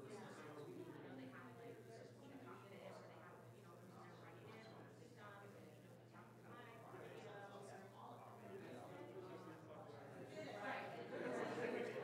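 A crowd of men and women chat in overlapping voices in a large room.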